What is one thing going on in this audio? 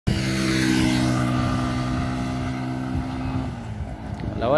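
A motorcycle engine hums as it rides past and fades away.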